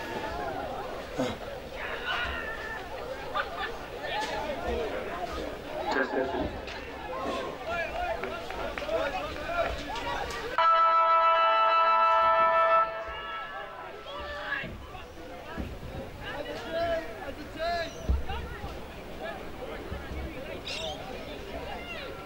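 Young girls shout and cheer excitedly outdoors.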